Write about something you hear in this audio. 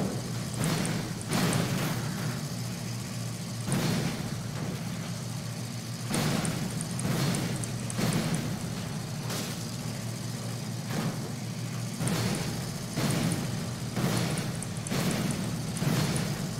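Gunfire and crashes burst out in loud waves.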